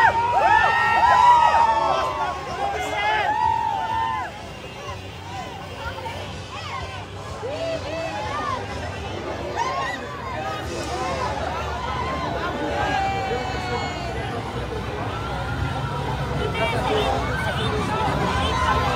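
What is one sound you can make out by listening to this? A large outdoor crowd cheers and shouts excitedly.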